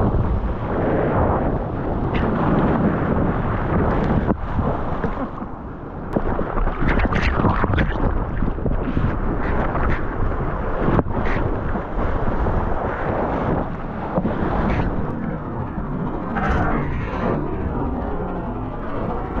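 Hands paddle and slap through the water.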